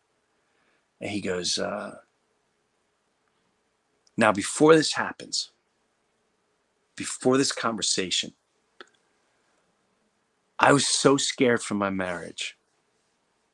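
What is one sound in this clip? A middle-aged man speaks with animation close to a microphone, in short bursts with pauses.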